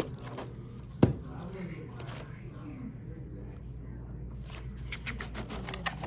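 A plastic case knocks and clatters as it is handled on a table.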